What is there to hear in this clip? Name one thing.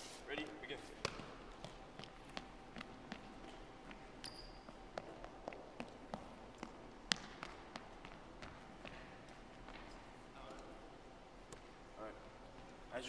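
Sneakers squeak and thud on a hardwood floor in a large echoing gym.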